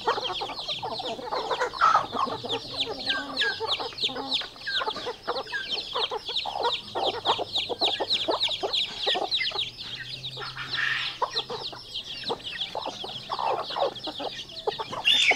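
Hens peck at food with quick light taps.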